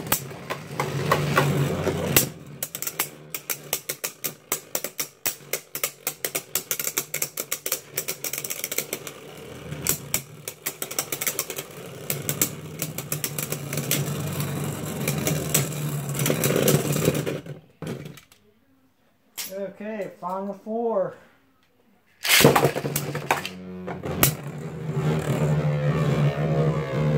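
Spinning tops whir steadily in a plastic bowl.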